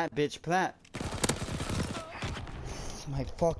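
Gunfire rattles in a rapid burst.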